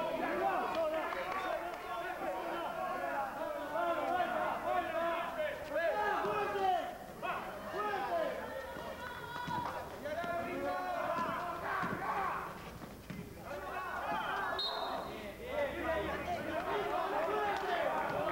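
A crowd of spectators talks and shouts outdoors.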